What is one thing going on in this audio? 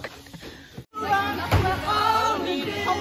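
Two girls shout excitedly close by.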